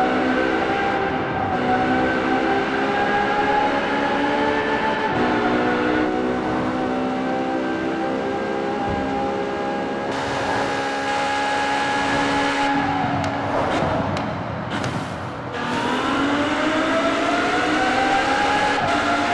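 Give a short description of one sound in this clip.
A racing car's engine roars at high revs, rising in pitch and dropping with each gear change.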